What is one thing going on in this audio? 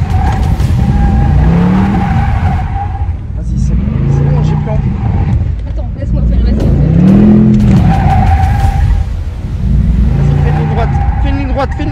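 A car engine revs up and down over and over.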